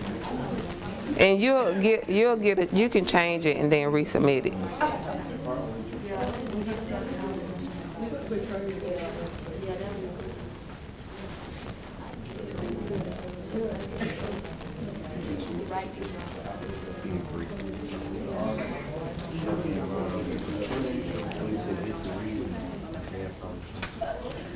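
A woman speaks with animation.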